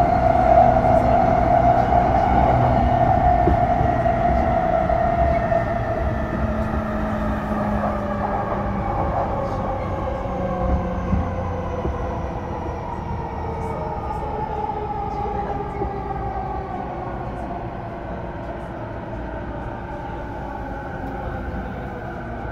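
An electric train's motor whines and falls slowly in pitch as the train slows.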